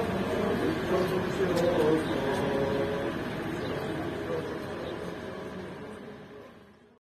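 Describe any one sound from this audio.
A crowd murmurs and talks outdoors.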